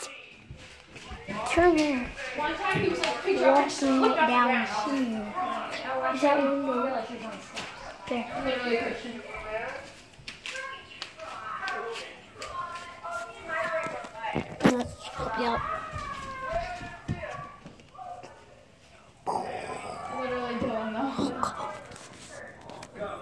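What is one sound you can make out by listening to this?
A young boy talks with animation close to a phone's microphone.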